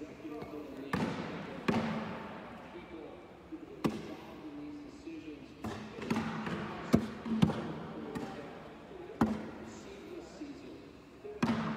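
Beanbags thud onto wooden boards in a large echoing hall.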